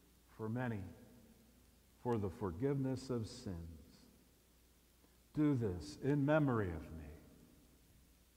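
An elderly man chants slowly through a microphone in a large echoing hall.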